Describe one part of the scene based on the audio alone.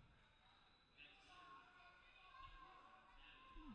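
A crowd chatters quietly in an echoing gym.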